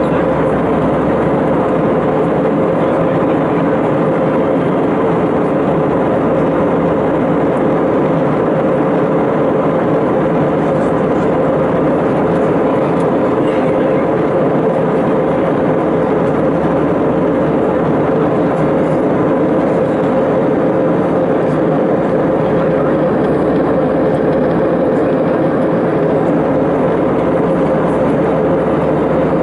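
Jet engines roar steadily with a low, constant hum.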